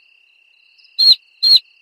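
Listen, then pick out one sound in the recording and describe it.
A cartoon hen clucks loudly twice.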